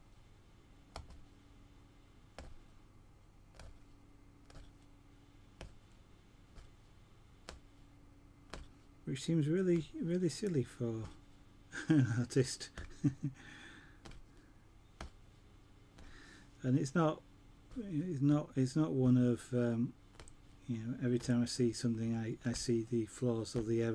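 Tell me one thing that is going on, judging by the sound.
A punch needle taps rapidly as it pokes through stretched cloth.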